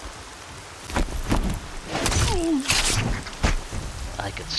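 A weapon strikes with a sharp, heavy thud.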